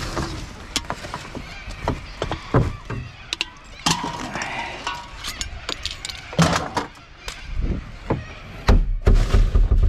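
Glass bottles and aluminium cans clink and clatter as they are sorted.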